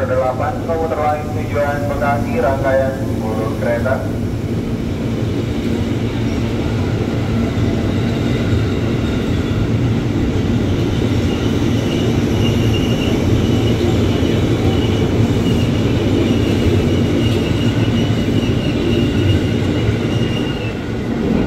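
An electric train rumbles as it pulls away.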